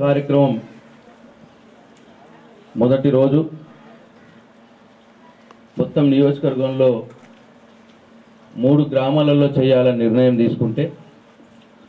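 A man speaks forcefully into a microphone over a loudspeaker, in short bursts with pauses.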